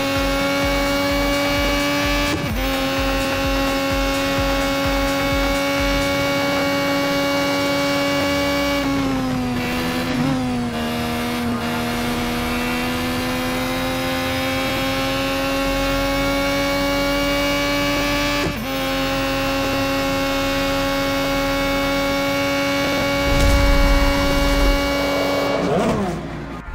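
A racing car engine screams at a high, steady pitch, dipping briefly as it shifts gears.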